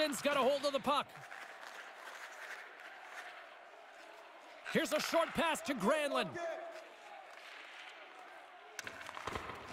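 A large crowd murmurs and cheers in an arena.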